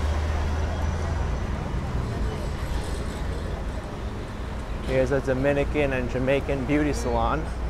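Passers-by chatter faintly in the street.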